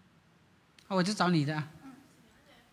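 A young woman speaks brightly and close to a microphone.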